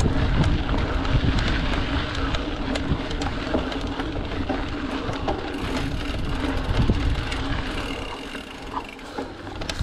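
Wind rushes past loudly, outdoors.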